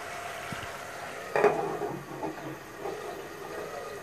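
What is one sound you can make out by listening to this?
A metal lid clinks onto a pot.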